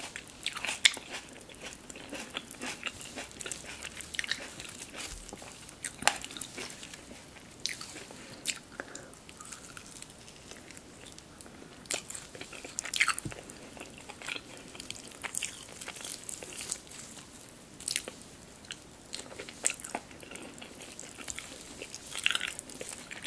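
Meat tears and squelches between fingers.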